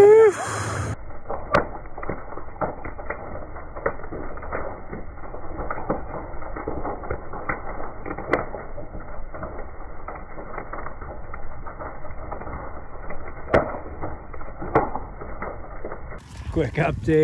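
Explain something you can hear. A large fire crackles and roars.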